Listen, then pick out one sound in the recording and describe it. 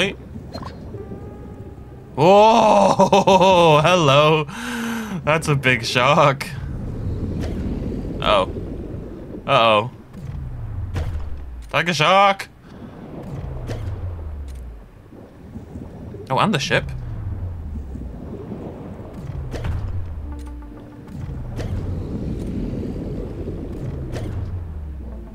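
A low underwater rumble swells and fades in slow waves.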